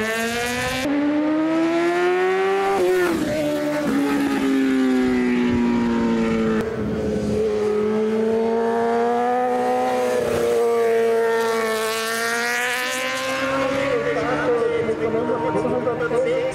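A racing motorcycle engine screams loudly, revving up and down through the gears.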